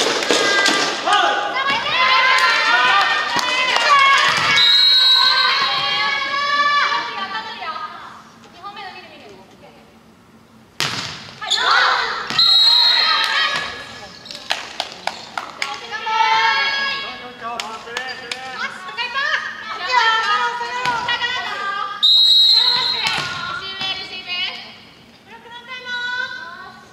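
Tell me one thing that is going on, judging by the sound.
Young women shout and cheer loudly in a large echoing hall.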